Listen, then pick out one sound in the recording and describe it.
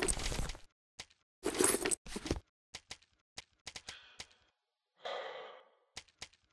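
Short, soft interface clicks tick one after another.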